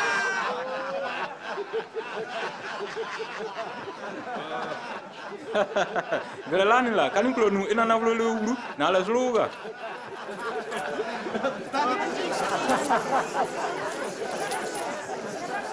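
A group of men laugh and cheer together.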